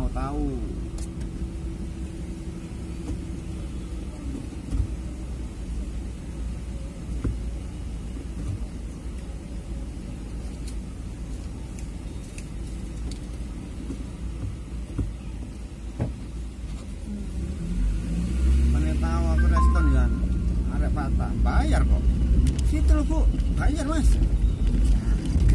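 An engine hums steadily from inside a car, growing louder as the car moves off.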